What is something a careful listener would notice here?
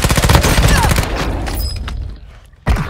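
Gunfire rattles loudly.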